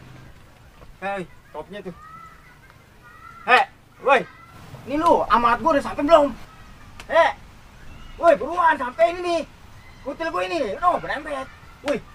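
A young man speaks loudly and urgently, close by.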